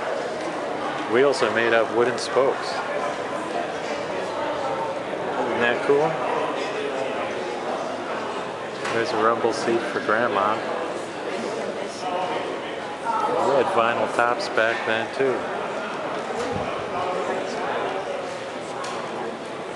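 Adult men and women chat nearby in a large, echoing hall.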